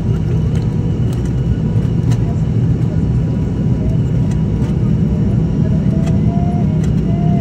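A plane's wheels rumble and thump along a runway.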